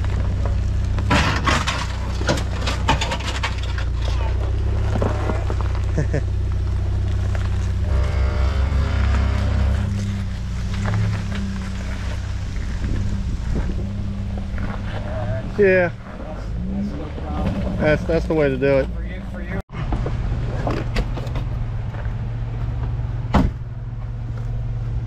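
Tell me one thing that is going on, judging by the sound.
Tyres crunch and grind over rocks and gravel.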